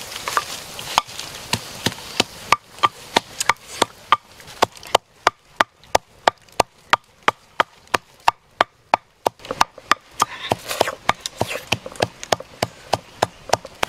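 A pestle pounds rhythmically in a wooden mortar.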